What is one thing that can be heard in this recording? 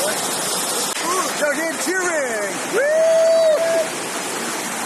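A group of young men cheer and shout excitedly.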